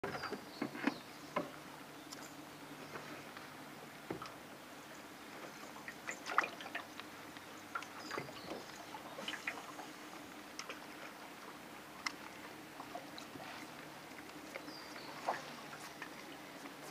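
Water laps and splashes softly against the side of a small boat.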